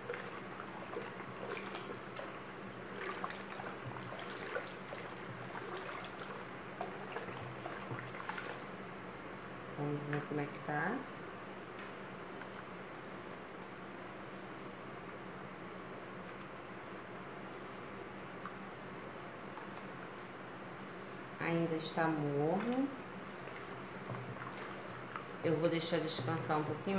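A wooden spoon stirs and splashes soapy water in a plastic basin.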